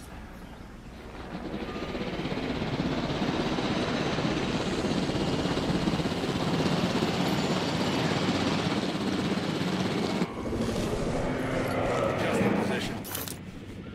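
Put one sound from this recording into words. A helicopter's rotor whirs and roars as it lifts off and flies.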